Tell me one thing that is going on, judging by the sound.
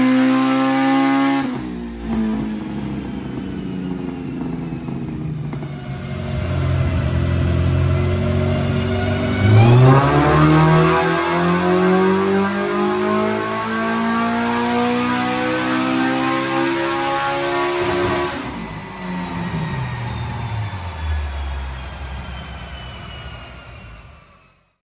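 A car engine revs hard up to a high scream, then drops back and idles down.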